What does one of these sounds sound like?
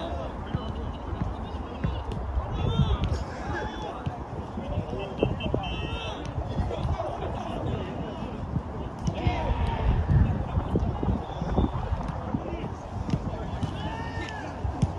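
Players shout and call out to each other outdoors.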